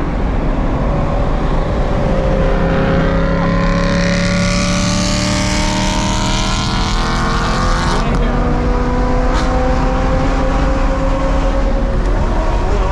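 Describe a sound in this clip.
A car engine roars as it accelerates, rising in pitch.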